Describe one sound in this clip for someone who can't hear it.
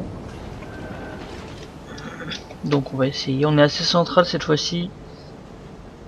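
Water washes steadily against a ship's hull.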